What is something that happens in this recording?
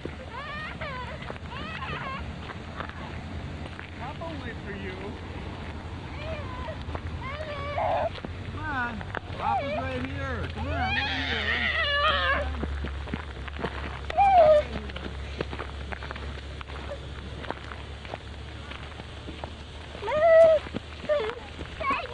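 Waterfowl on the water honk and call repeatedly.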